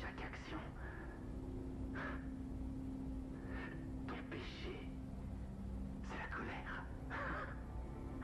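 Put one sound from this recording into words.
A man speaks slowly and menacingly, close by.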